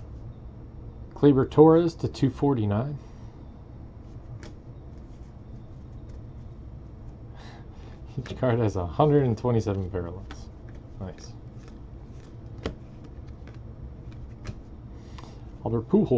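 Cards flick and rustle as they are shuffled by hand.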